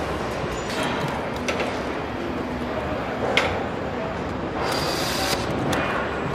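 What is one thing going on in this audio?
A power wrench whirs and clicks as it tightens bolts.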